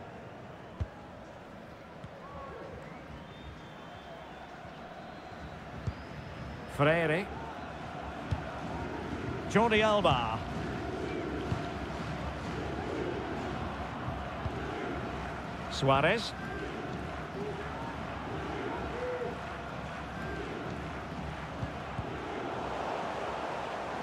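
A stadium crowd murmurs and cheers steadily in the background.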